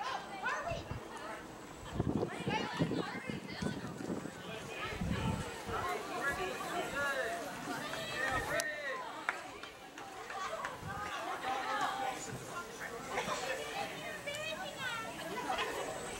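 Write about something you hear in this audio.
Teenage girls shout and cheer outdoors.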